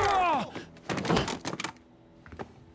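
A gunshot bangs loudly.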